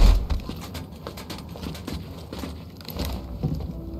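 Hands clank on a metal grate while climbing.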